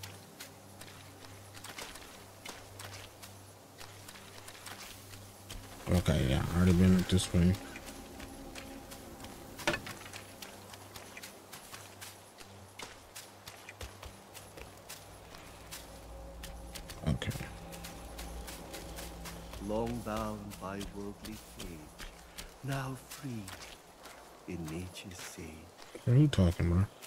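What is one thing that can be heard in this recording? Footsteps tread steadily on stone steps and earth.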